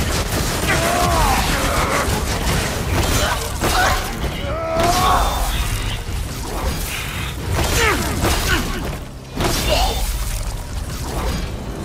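Heavy weapons clash and strike hard in a fight.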